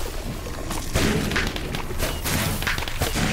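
A large explosion booms.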